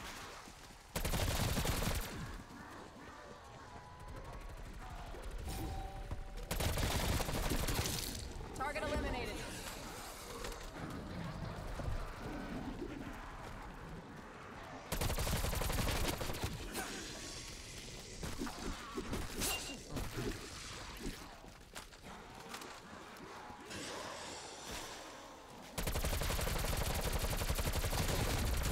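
Gunfire bursts out in loud rapid shots.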